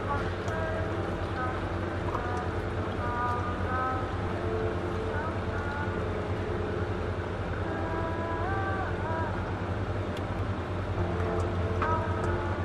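A thin stream of coffee trickles into a cup.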